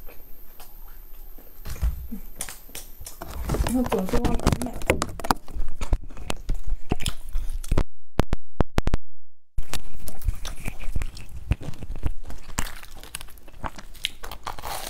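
A young woman chews noisily close to a microphone.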